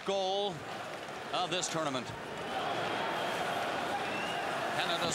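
A crowd roars loudly in a large echoing arena.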